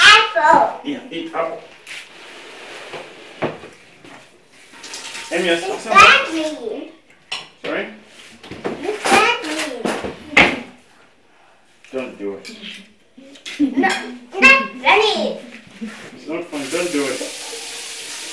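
Dishes clink and clatter in a sink.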